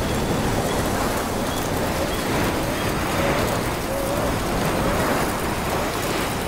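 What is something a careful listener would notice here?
A river rushes over rocks.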